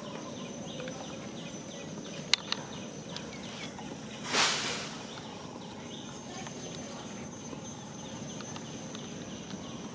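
A monkey's feet rustle through dry leaves on the ground.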